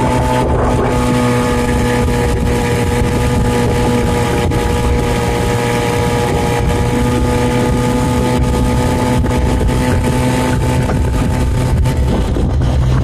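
An outboard motor drones loudly and steadily up close.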